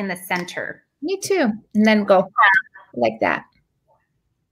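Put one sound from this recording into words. An older woman speaks cheerfully over an online call.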